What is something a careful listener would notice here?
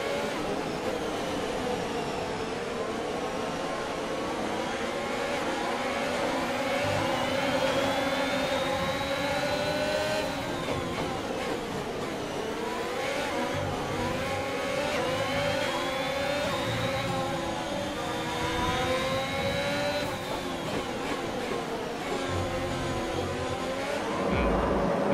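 A racing car engine screams at high revs, rising and falling as gears change.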